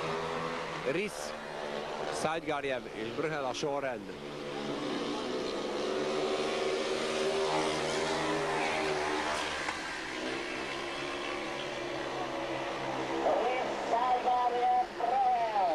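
Motorcycle engines roar and rev loudly.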